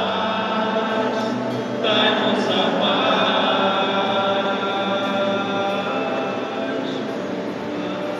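A large crowd sings together in a big echoing hall.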